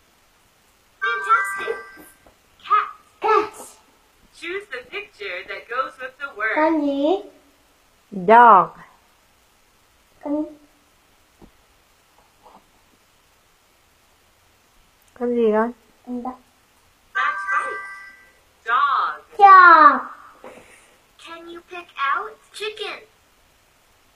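A computer game plays short cheerful sounds through small speakers.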